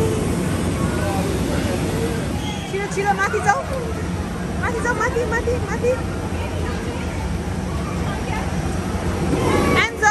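Young children chatter and squeal nearby in a busy, echoing hall.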